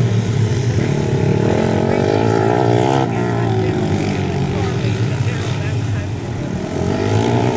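Dirt bike engines roar and rev loudly close by.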